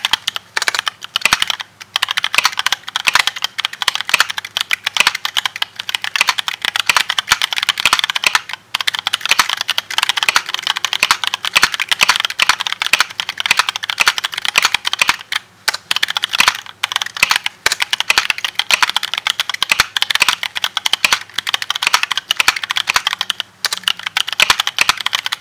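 Fingers type quickly on a mechanical keyboard, with keys clacking rapidly and steadily.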